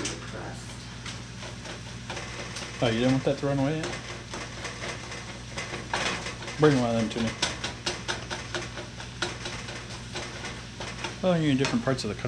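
Meat sizzles in a frying pan.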